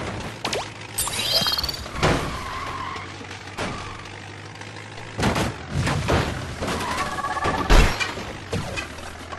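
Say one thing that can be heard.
An electric shield crackles and zaps.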